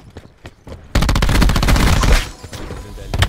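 A gun fires in a rapid, loud burst.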